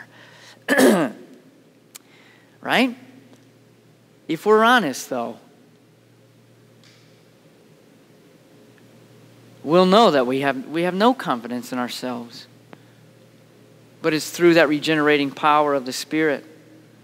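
A man speaks calmly into a headset microphone, pausing often, in a large echoing hall.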